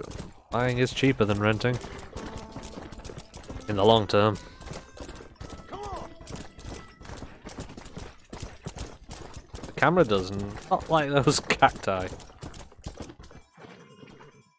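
A horse gallops, its hooves thudding on dirt.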